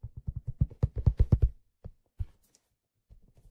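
Fingers tap on a stiff leather hat, very close.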